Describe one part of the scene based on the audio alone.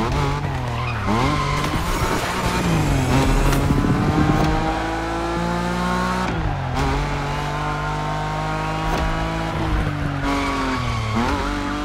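Tyres squeal as a car slides through turns.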